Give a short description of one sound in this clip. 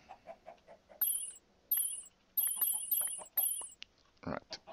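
Magical chimes twinkle in quick bursts.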